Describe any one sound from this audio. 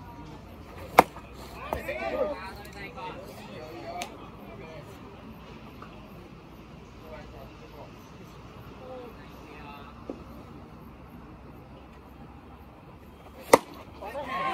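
A ball smacks sharply into a catcher's mitt.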